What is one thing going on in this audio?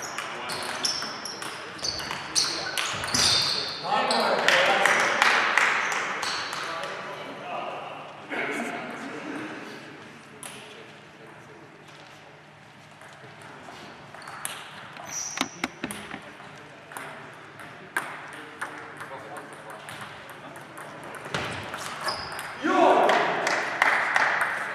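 A ball clicks rapidly back and forth across a table.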